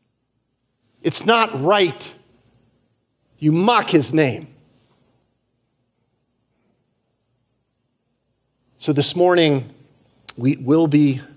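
A man speaks through a microphone in measured bursts with pauses.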